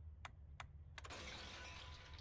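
A magical portal whooshes open.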